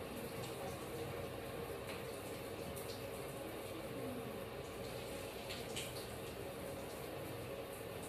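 Fingers scrub shampoo lather through wet hair.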